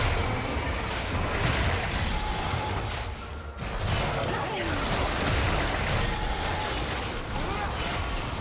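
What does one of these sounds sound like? Spell effects crackle and whoosh as game characters fight.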